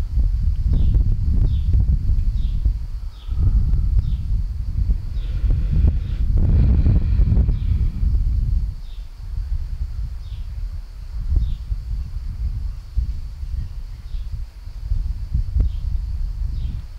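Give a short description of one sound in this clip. An older man speaks calmly through a headset microphone.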